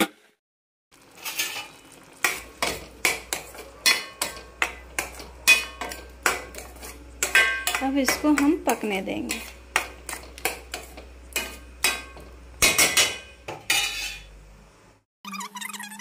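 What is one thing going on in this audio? A metal spoon scrapes and clinks against a steel pan.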